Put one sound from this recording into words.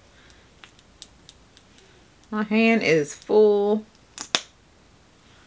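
Plastic tube caps click open and shut.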